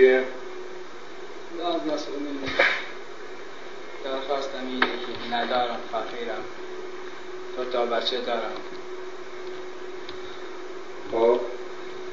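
A man speaks calmly and weakly, close by.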